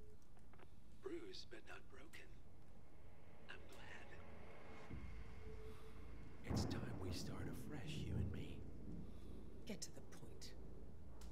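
A woman speaks quietly and tensely, close by.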